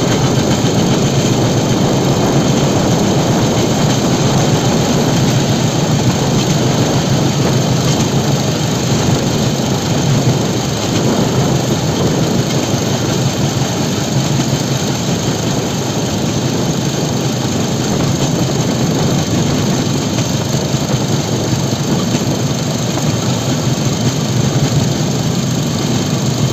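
Metal wheels rumble and clatter along a rail track.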